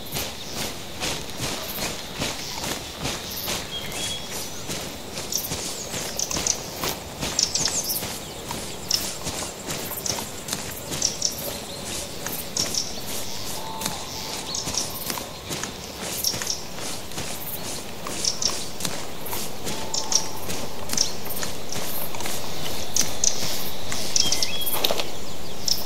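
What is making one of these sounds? Footsteps swish through tall grass at a steady walking pace.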